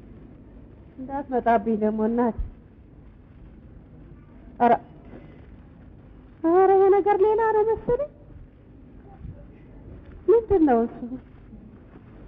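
A woman calls out in long, wavering, high cries.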